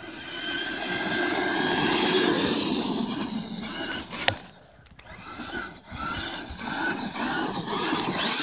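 Tyres of a radio-controlled truck churn through loose sand.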